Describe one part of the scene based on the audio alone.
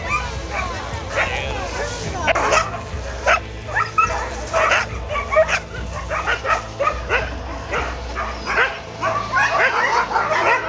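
Many dogs bark and howl excitedly outdoors.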